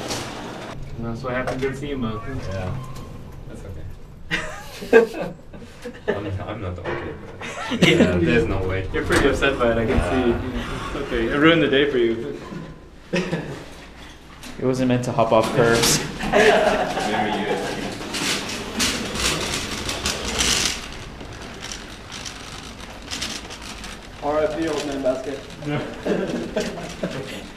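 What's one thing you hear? Several men talk and laugh close by.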